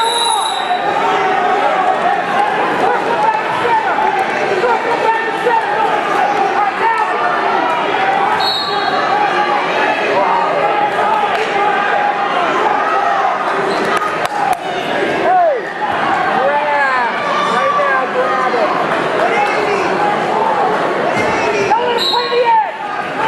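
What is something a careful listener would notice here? A large crowd cheers and shouts loudly in an echoing gym.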